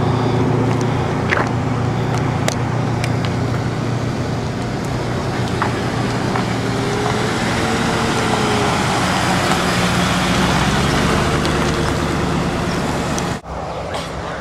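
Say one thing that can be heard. A car engine idles and rumbles nearby.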